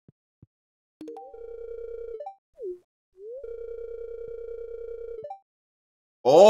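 A game's dialogue text plays a quick, steady run of buzzing blips.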